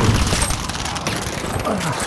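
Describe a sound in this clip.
A gunshot booms.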